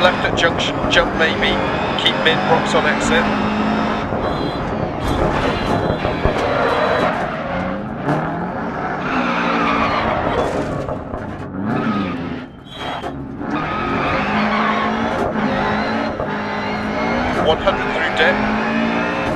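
Gravel sprays and rattles under the tyres.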